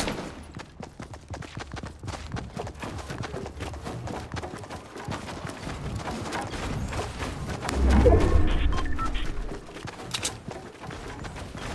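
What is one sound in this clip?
Footsteps run quickly over ground and wooden ramps.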